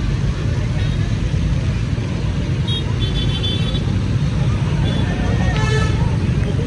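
Many motorbike engines hum steadily as riders pass close by.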